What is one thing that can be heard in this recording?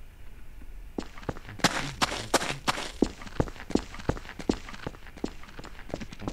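Footsteps thud steadily on a hard road.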